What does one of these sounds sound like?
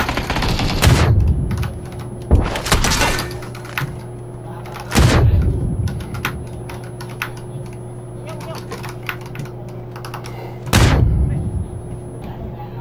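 Gunshots boom loudly, each followed by a rolling echo.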